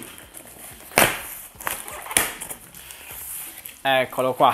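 Cardboard flaps scrape and thump as a box is pulled open.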